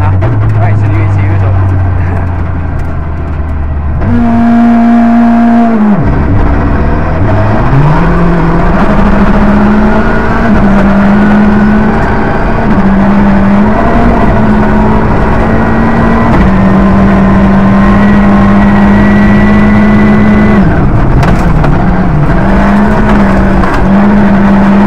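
Tyres crunch and rumble over loose gravel.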